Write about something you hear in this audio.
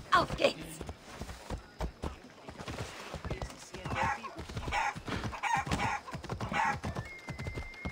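A horse's hooves clop on a dirt road.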